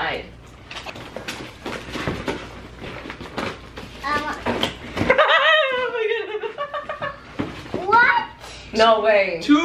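Cardboard and packaging rustle as toys are pulled from a box.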